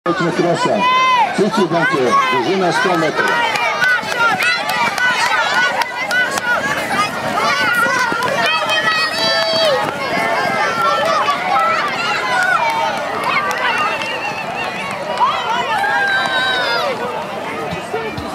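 A crowd of young children shout and squeal excitedly outdoors.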